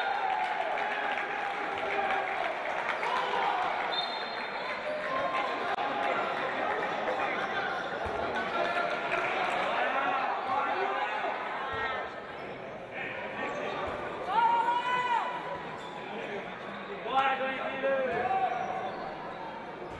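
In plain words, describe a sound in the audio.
Sneakers squeak on an indoor court.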